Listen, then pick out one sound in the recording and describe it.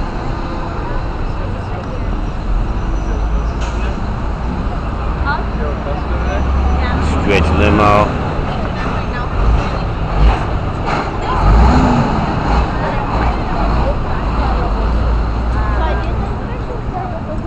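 Cars and a truck drive past close by.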